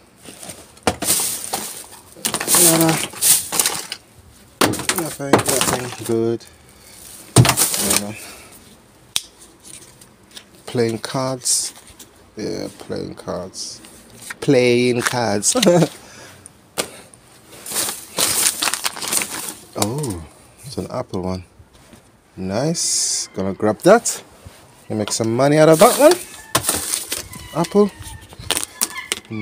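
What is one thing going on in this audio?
A plastic bag rustles and crinkles as gloved hands rummage through it.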